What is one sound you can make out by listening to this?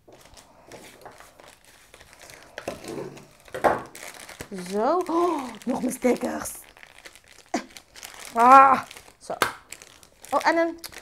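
Paper and plastic packaging crinkle and rustle as it is handled.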